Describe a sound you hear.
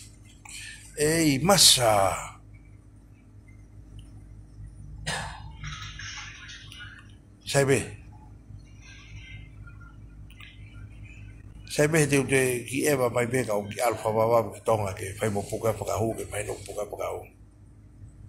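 A middle-aged man speaks calmly, close to a phone microphone.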